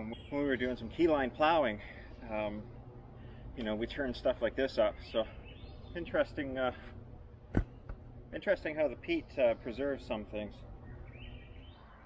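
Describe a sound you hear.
A middle-aged man talks calmly outdoors, close by.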